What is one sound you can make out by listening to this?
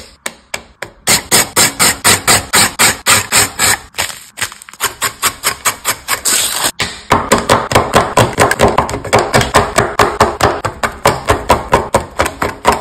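A knife chops quickly and repeatedly on a wooden board.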